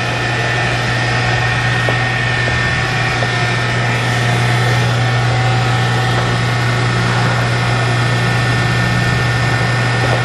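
A large electric motor hums steadily and loudly.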